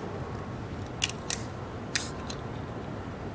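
A glass bottle clinks and knocks against a hard surface.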